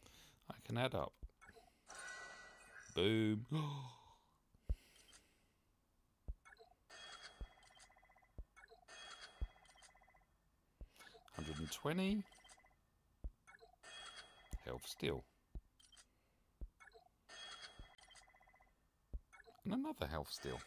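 Short electronic clicks and chimes sound as menus open and close.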